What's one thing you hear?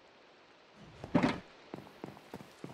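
A box lid closes with a muffled thud.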